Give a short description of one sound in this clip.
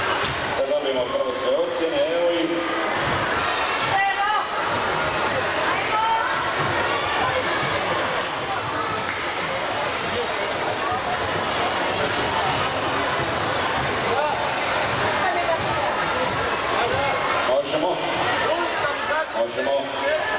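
A crowd of people chatters throughout a large echoing hall.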